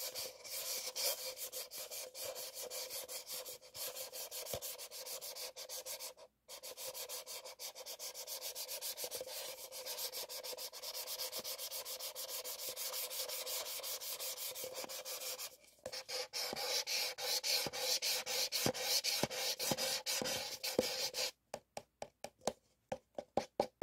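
Paper cups tap and click together.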